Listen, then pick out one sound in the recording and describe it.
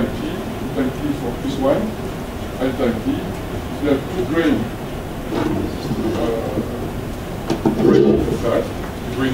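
A man lectures calmly through a microphone in a large echoing hall.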